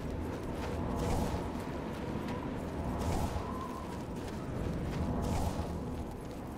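A magic spell bursts with a rushing whoosh, again and again.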